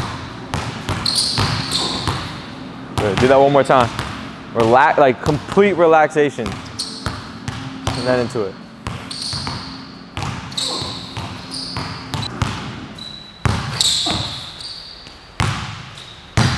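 A basketball bounces on a hard gym floor.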